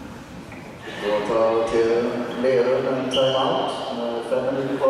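Young players shout and cheer loudly in an echoing hall.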